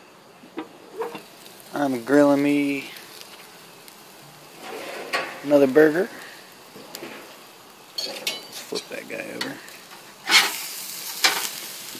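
A burger patty sizzles on a hot grill.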